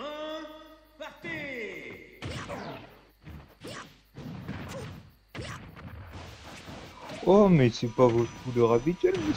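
A video game plays punching, whooshing and impact sound effects.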